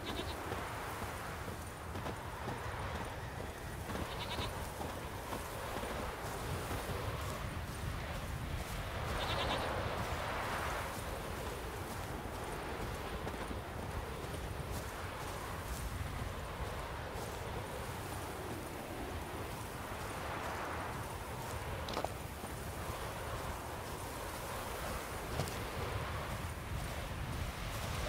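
Footsteps crunch through brush and grass.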